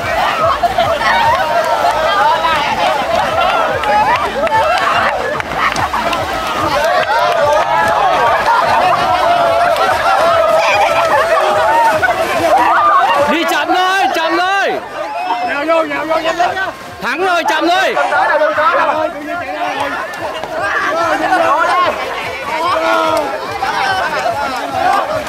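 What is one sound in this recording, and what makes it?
A group of young men and women shout and cheer excitedly outdoors.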